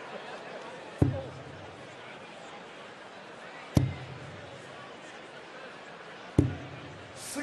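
Darts thud into a dartboard one at a time.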